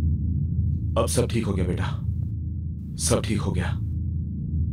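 A man calls out loudly.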